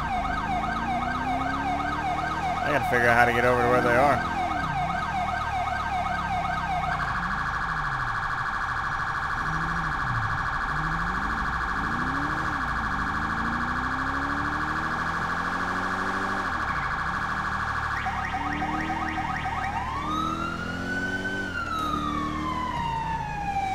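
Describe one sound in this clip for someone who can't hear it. A police siren wails and yelps close by, changing its pattern several times.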